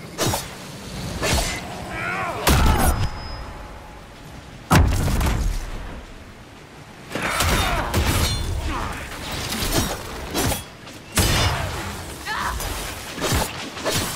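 A wolf growls and snarls.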